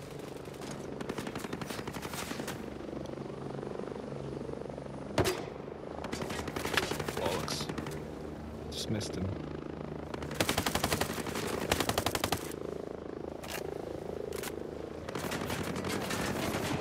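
A rifle fires rapid bursts of gunshots nearby.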